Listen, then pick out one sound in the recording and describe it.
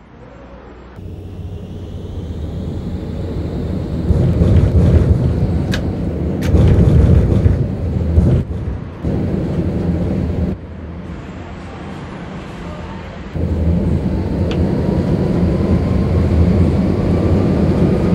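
Tram wheels clatter over the rails.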